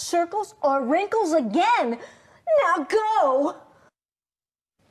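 A middle-aged woman speaks with animation, close by.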